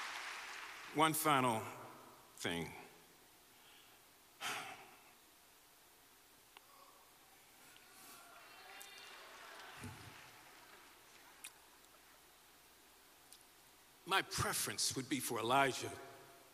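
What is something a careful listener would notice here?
A man speaks slowly and with feeling through a microphone in a large echoing hall.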